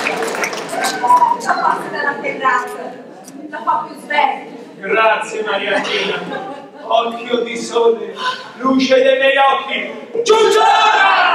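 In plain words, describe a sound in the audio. A woman speaks expressively in an echoing hall.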